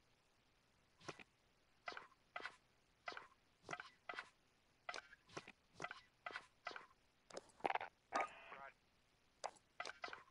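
Short electronic menu clicks sound again and again.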